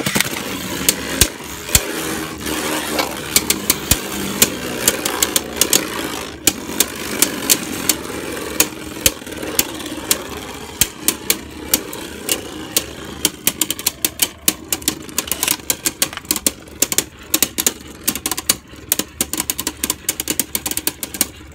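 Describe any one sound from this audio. Spinning tops whir steadily inside a plastic arena.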